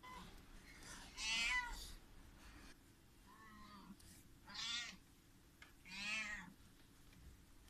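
Young kittens mew in high, thin cries.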